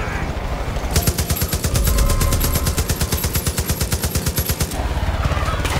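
A machine gun fires in a rapid burst.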